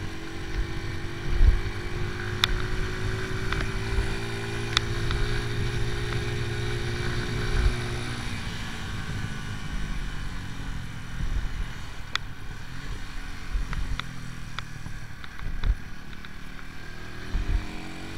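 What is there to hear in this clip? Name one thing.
A motorcycle engine hums steadily, then eases off.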